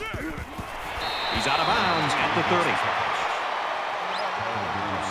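A stadium crowd roars and cheers.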